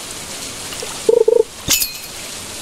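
A short chime sounds as a fish bites.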